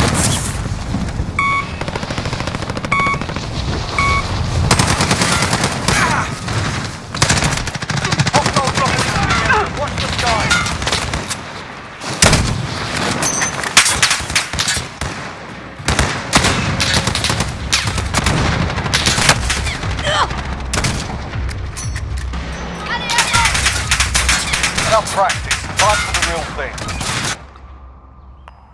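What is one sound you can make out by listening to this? Gunshots crack in sharp bursts.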